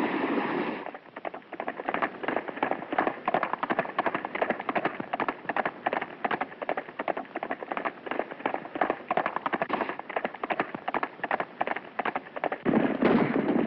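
Horse hooves pound rapidly on the ground at a gallop.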